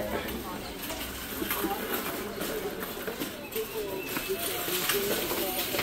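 A shopping cart's wheels rattle across a hard floor.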